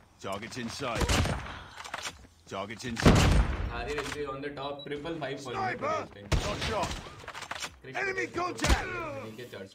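A sniper rifle fires with loud, sharp cracks.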